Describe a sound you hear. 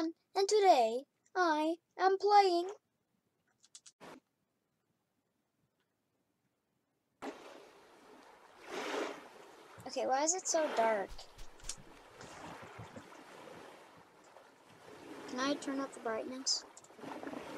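A young boy talks close to a microphone.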